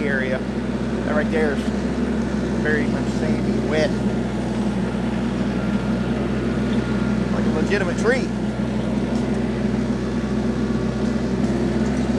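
Branches scrape and crackle as a fallen tree is dragged across the ground.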